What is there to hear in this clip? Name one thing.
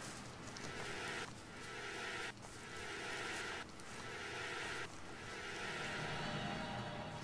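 A small fire hisses and crackles softly.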